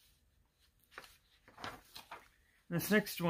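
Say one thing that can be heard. Paper rustles as sheets are turned.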